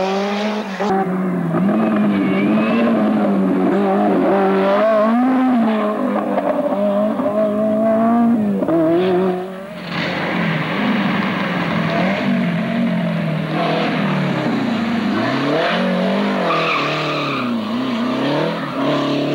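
A rally car engine roars and revs hard, rising and falling in pitch as gears change.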